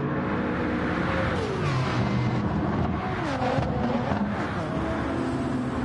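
An engine's pitch drops and rises as a car shifts gears and brakes.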